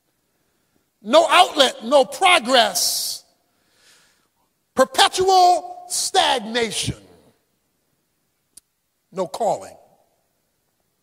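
A man speaks with animation into a microphone, in short bursts with pauses.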